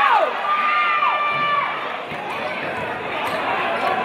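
A basketball bounces on the court as a player dribbles.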